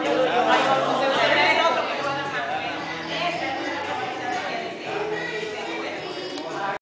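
Several men and women talk at once in a room with a slight echo.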